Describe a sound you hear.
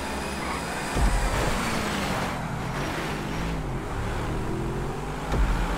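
Car tyres screech as the car skids and spins.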